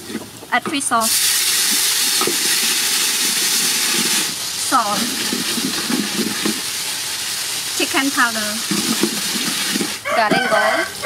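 Hot oil sizzles loudly in a pot.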